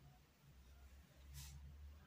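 A paintbrush dabs in a small paint jar.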